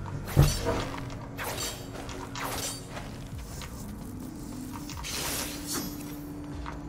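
Sword slashes whoosh and clang in quick bursts.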